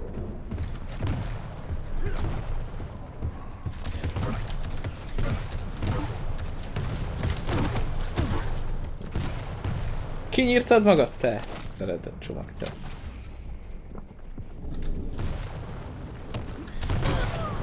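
Gunfire and explosions from a fast action game pound in short bursts.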